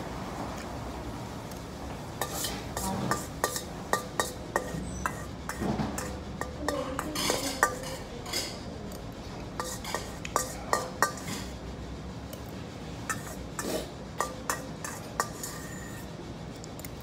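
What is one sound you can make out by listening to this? A man slurps soup loudly from a bowl.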